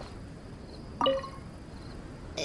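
A bright magical chime rings out.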